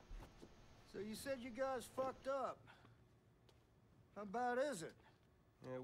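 A young man speaks casually.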